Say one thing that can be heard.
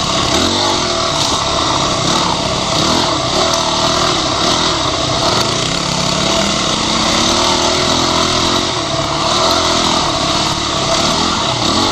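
A dirt bike engine revs and roars close by, rising and falling in pitch.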